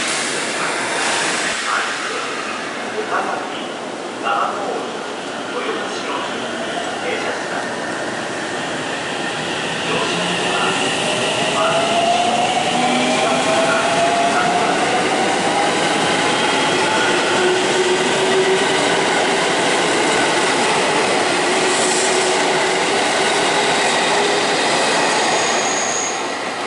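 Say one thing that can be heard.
A train rumbles steadily past close by.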